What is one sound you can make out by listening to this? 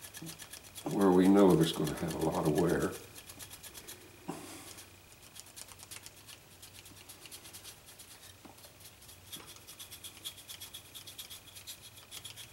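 A paintbrush brushes softly against a wooden figure.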